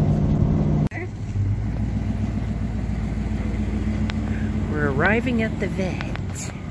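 A truck engine idles outdoors.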